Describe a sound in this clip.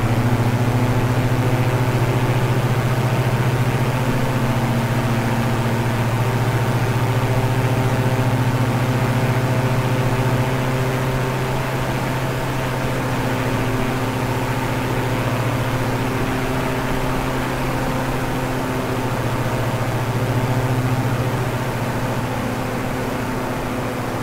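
Twin propeller engines drone steadily as an airplane flies.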